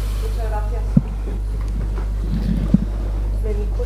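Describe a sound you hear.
A chair knocks and shifts as a man stands up.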